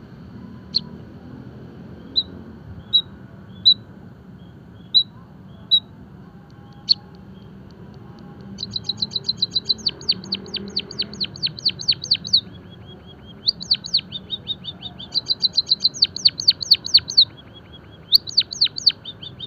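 A Java sparrow chirps in sharp single notes, then sings in rapid bursts of clicking trills.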